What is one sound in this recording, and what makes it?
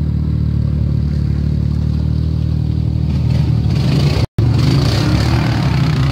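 A quad bike's engine rumbles close by.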